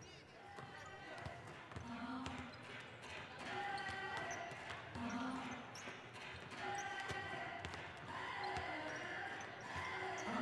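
A basketball swishes through a net.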